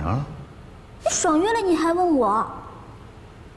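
A young woman speaks reproachfully up close.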